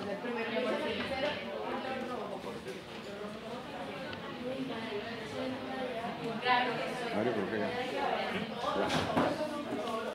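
Young people chatter quietly in the background.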